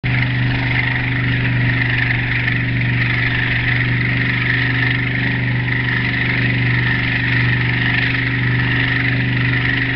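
Churning water rushes and splashes behind a speeding boat.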